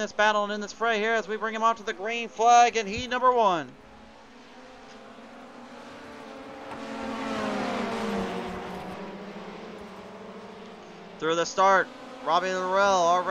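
Racing car engines drone and whine as cars speed past.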